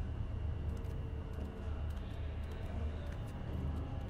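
Bare footsteps pad slowly across a hard floor.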